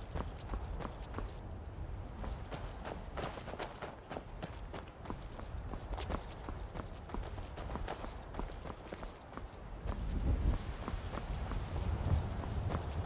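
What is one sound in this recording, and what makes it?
Footsteps crunch steadily over gravel and rock.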